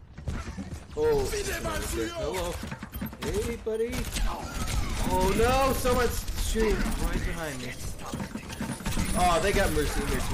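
Gunfire crackles in rapid bursts from a video game.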